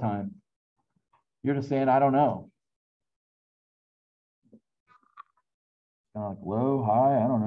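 A middle-aged man speaks calmly through a microphone over an online call, in short phrases with pauses.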